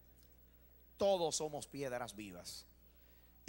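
A middle-aged man speaks with emphasis through a microphone and loudspeakers.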